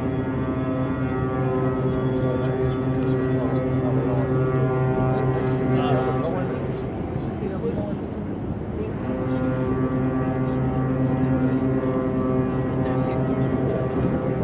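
A ship's deep horn blasts loudly across open water, stops briefly and then sounds again.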